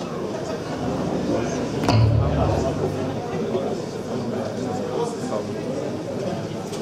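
An electric guitar plays loudly through amplifiers in a large echoing hall.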